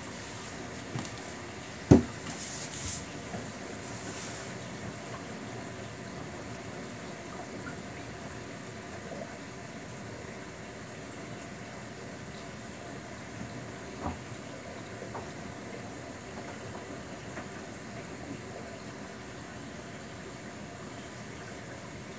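A front-loading washing machine tumbles wet laundry in its drum during the wash.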